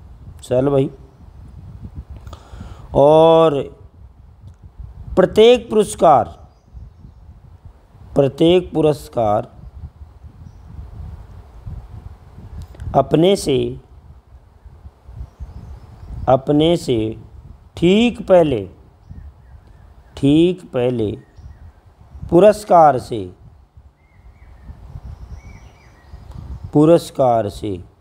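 A middle-aged man speaks calmly and slowly into a close microphone, with pauses between phrases.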